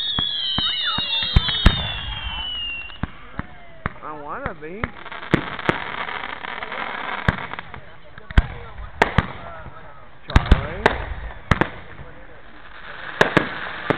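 Fireworks bang and crackle outdoors, one burst after another.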